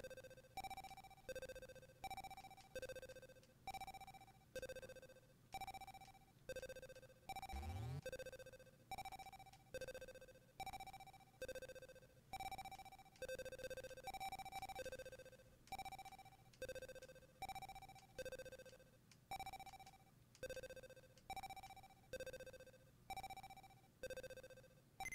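Short electronic beeps sound at a steady pace as a ball bounces in a retro video game.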